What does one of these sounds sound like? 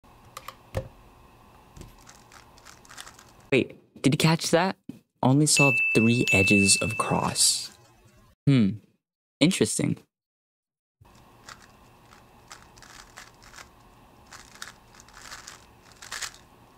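A puzzle cube clicks and clacks as it is quickly turned by hand.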